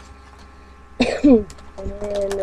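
A woman coughs.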